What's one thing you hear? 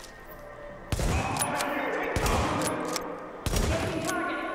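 A rifle fires single loud shots that echo.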